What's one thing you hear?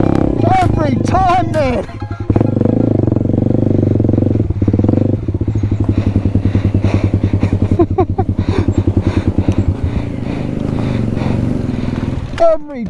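A dirt bike engine chugs and revs up close.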